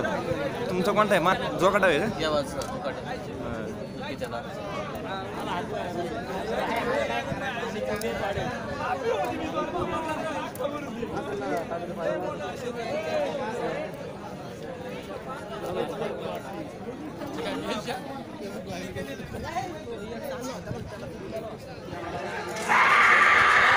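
A large outdoor crowd of men murmurs and chatters.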